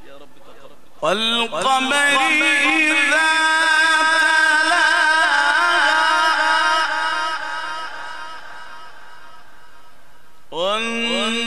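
A man chants a long, drawn-out melodic recitation through a microphone.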